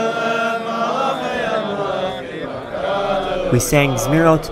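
A group of young men sing together in chorus outdoors.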